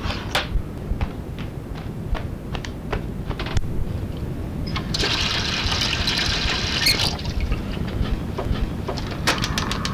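Water drips slowly from a tap.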